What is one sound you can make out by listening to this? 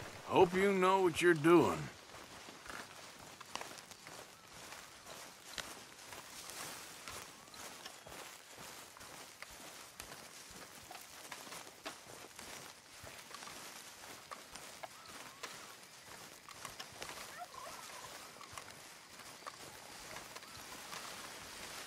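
Footsteps rustle through undergrowth.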